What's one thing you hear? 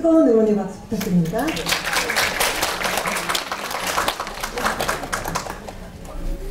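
An audience claps and applauds in a large hall.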